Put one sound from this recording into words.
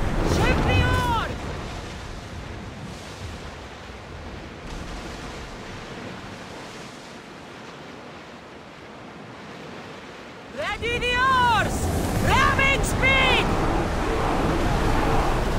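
Waves splash and rush against a ship's hull.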